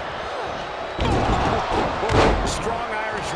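A heavy body thuds onto a wrestling ring mat.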